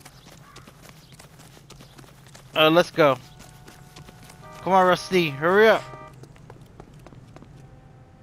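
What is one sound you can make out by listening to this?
Footsteps run across grass and pavement.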